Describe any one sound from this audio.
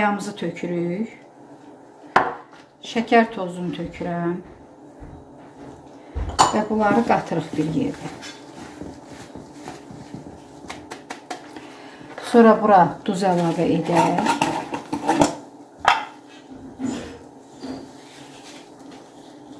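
Hands rub and squeeze flour in a plastic bowl.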